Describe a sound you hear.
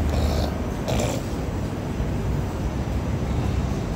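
Ceiling fans whir steadily overhead.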